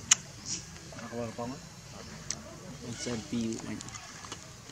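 A young monkey squeaks softly.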